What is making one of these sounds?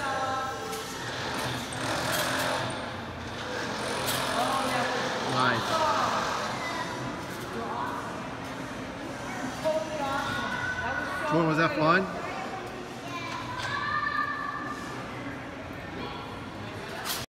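A boy bounces on a trampoline with springy thumps.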